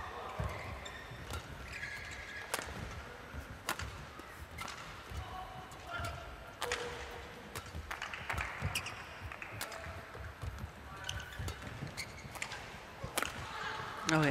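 Rackets strike a shuttlecock back and forth with sharp pops.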